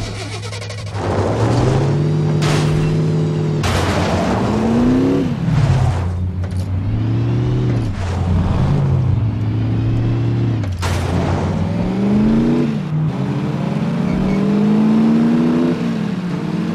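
A vintage car engine revs up and drops in pitch as it shifts gears.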